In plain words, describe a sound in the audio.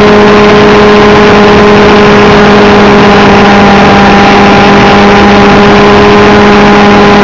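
Rotor blades whir and buffet the air close by.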